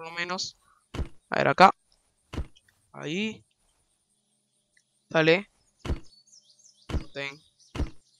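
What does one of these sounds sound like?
An axe chops into a tree trunk with sharp thuds.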